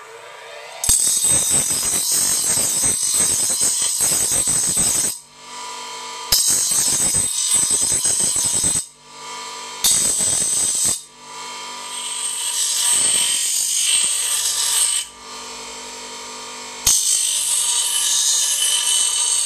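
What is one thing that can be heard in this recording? A bench grinder grinds metal in loud, harsh bursts.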